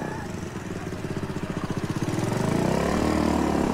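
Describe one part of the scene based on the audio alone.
A motorcycle engine rumbles closer and grows louder.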